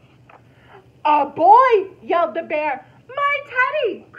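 A young woman reads aloud expressively, close to a microphone.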